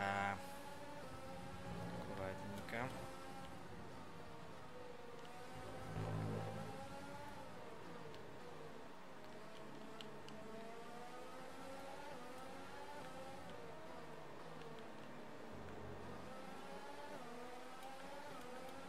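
A racing car engine whines loudly, rising and falling in pitch as it speeds up and slows down through gear changes.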